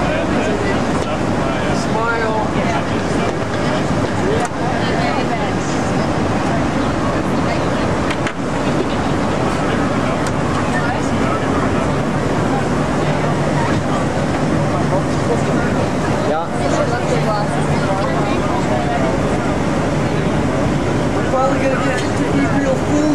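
Many young people chatter and talk at once.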